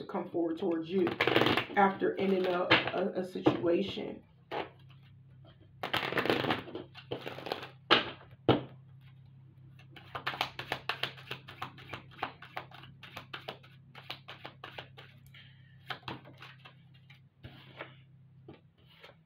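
Trading cards rustle and flick as they are shuffled through by hand.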